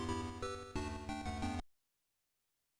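A short electronic game jingle plays a few bright beeping notes.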